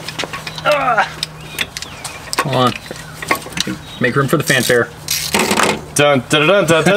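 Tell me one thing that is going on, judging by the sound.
Metal tools clink against engine parts.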